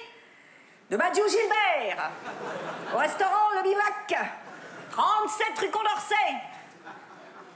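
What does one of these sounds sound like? A woman reads aloud with lively, exaggerated expression through a microphone.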